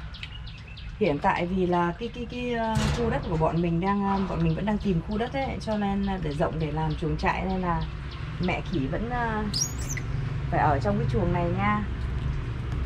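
A baby monkey screams and squeals loudly, close by.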